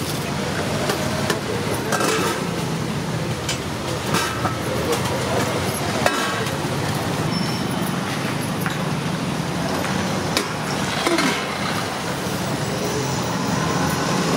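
Metal pots and plates clink now and then.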